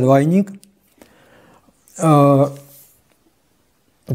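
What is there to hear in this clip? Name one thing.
A cardboard record sleeve rustles in hands.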